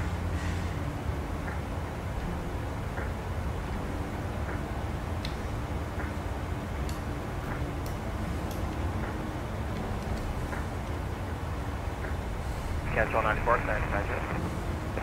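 A jet engine drones steadily in flight.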